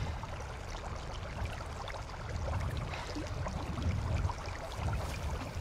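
Water laps gently against a small wooden boat.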